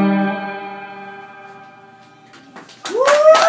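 An electric guitar chord rings out and slowly fades.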